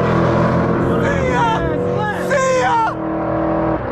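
A young man shouts with excitement nearby.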